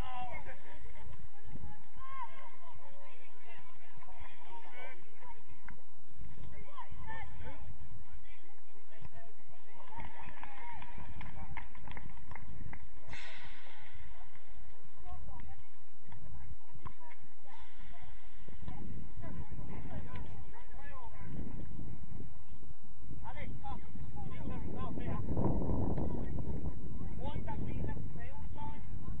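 Young men shout to each other from a distance outdoors.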